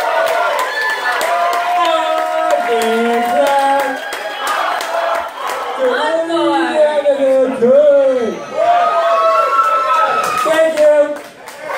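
A man sings loudly into a microphone, heard through loudspeakers in a large room.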